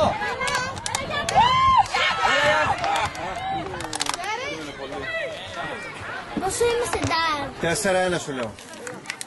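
Young players shout to each other across an outdoor football pitch.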